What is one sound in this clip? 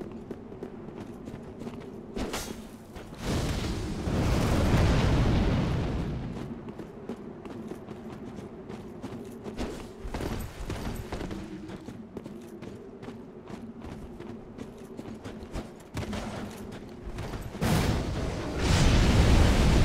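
Footsteps crunch quickly on snowy stone.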